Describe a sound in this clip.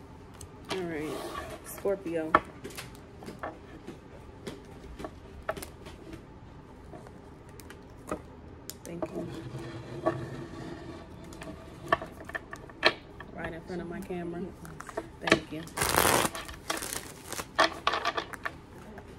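Long fingernails tap and click on a small object.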